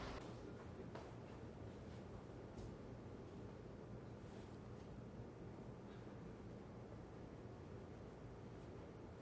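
Boot heels tap on a hard floor.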